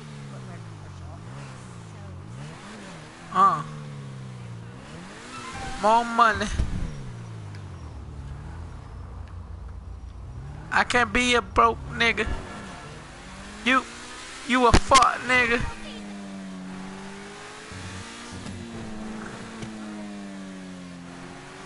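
A sports car engine revs and roars, rising and falling in pitch as it speeds along.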